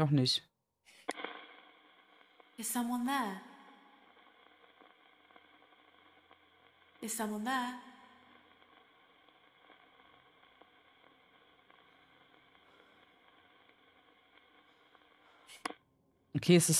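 An old radio hums steadily.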